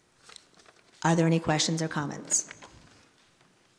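A woman speaks clearly into a microphone in a large echoing hall.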